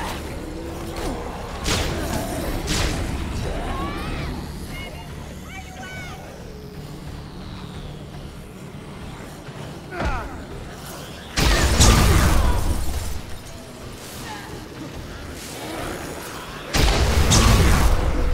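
Heavy blows thud against bodies in quick bursts.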